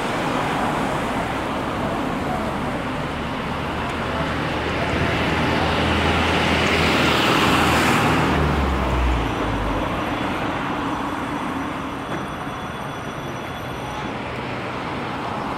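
City traffic rumbles steadily along a street outdoors.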